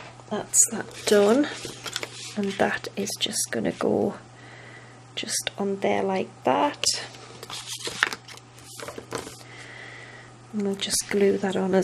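Paper card rustles and taps as it is folded and handled.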